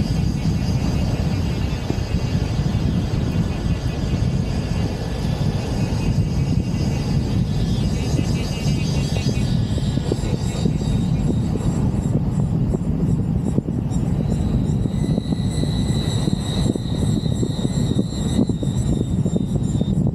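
Wind rushes loudly past an open car.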